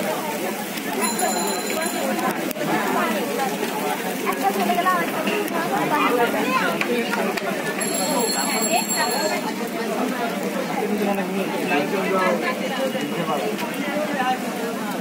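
Many men talk at once nearby, in a lively hubbub.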